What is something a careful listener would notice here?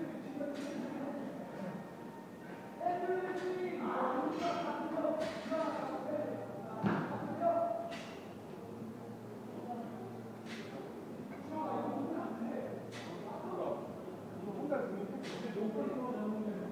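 Several men talk and call out in a large echoing room.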